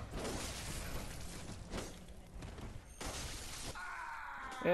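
Blades slash and strike in a close fight.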